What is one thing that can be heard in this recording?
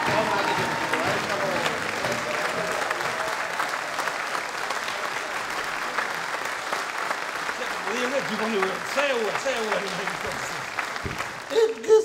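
An audience applauds loudly in a hall.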